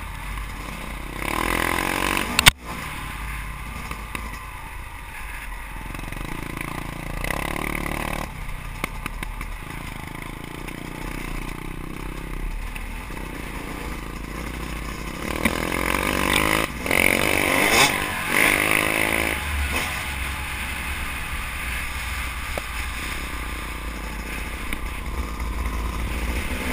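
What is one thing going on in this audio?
A dirt bike engine drones and revs close by.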